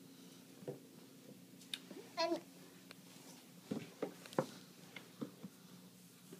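A plastic toy crib rattles and knocks as it is handled.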